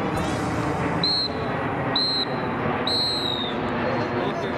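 A referee's whistle blows three short blasts.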